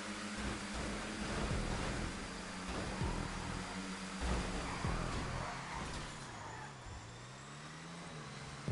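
Race car engines roar loudly at high speed.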